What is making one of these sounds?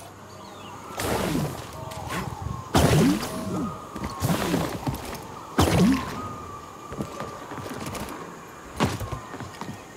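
Heavy thuds land one after another.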